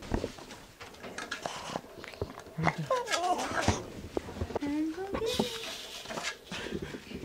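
A dog's paws scratch and tap on a wooden stool.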